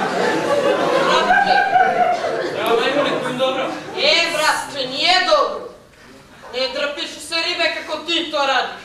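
A young man speaks loudly and with animation in a large echoing hall.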